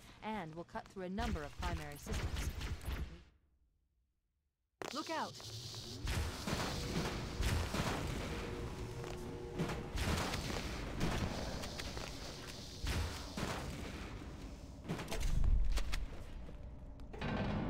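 Game gunfire bursts in rapid shots.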